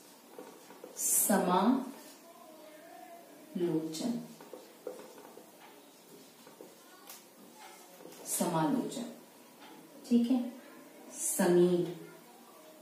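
A woman speaks calmly, explaining in short phrases.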